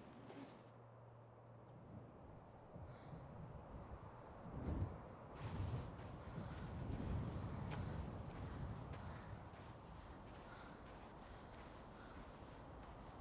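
Wind gusts strongly outdoors.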